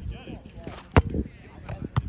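A volleyball is served with a sharp slap of a hand.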